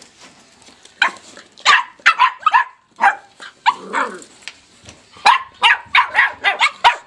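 Small puppies yip and whine playfully close by.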